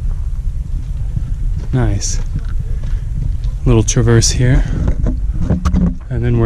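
Footsteps scuff on rock.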